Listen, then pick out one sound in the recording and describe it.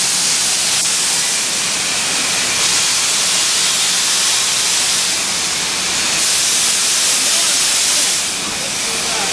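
A steam locomotive hisses as steam jets out beside it.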